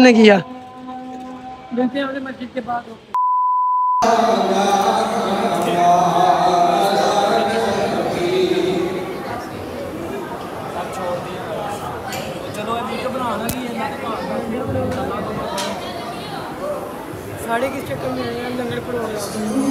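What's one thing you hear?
A young man speaks close by.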